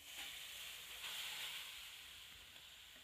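Grated vegetables pour and rustle into a metal bowl.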